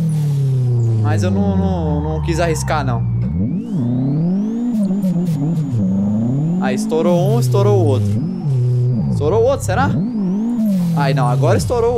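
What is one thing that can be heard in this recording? Tyres screech in short bursts as the car slides through corners.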